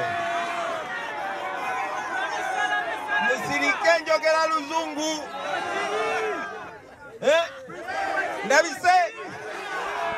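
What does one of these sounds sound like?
A man speaks with animation into a microphone, heard through a loudspeaker outdoors.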